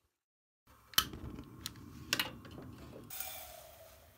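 A gas burner hisses softly.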